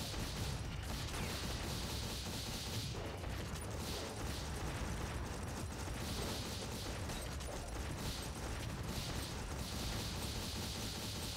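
Gunfire and explosions rattle loudly and continuously.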